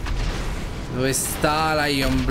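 A car smashes through a wall with a loud crash of debris.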